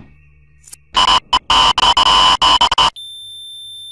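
Loud static hisses and crackles.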